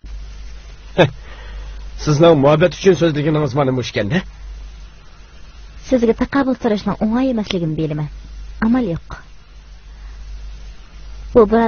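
A man speaks in a low voice.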